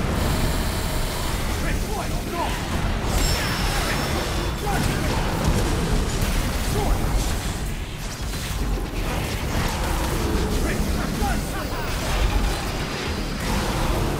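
Blades slash and clang in rapid strikes.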